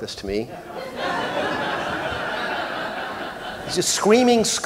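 An audience laughs together.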